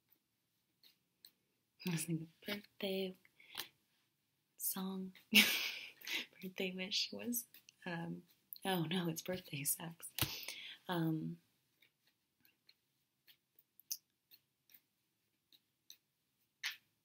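Playing cards rustle and flick as they are shuffled.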